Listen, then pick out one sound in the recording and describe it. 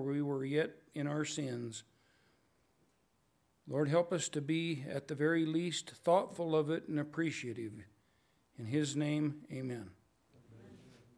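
A man prays calmly into a microphone.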